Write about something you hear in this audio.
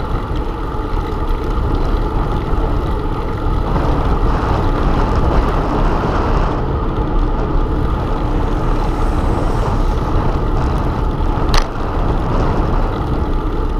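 Wheels roll steadily over pavement.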